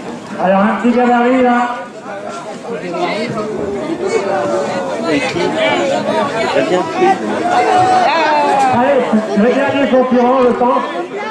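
Several men shout and laugh loudly outdoors.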